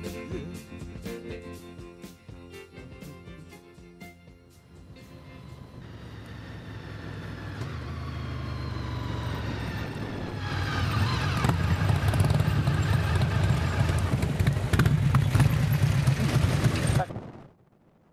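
A motorcycle engine hums steadily and revs up as the ride goes on.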